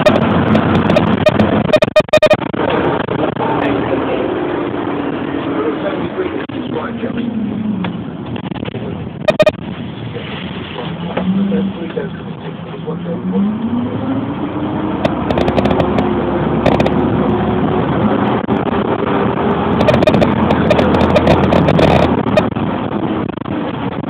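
A vehicle engine hums and changes pitch as it drives along a road.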